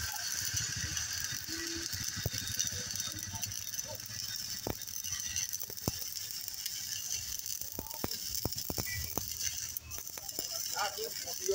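An arc welder crackles and sizzles steadily.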